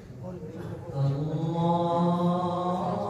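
A man chants through a loudspeaker, echoing in a large hall.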